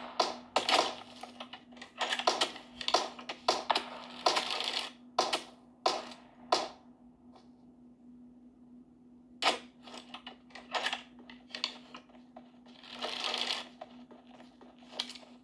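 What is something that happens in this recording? Gunshots and game sounds crack from a phone's speaker in quick bursts.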